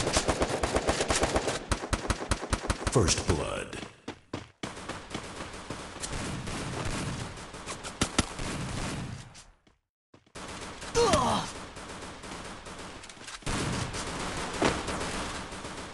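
Footsteps run on hard ground.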